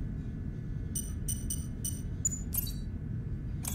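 Electronic buttons beep with short high tones.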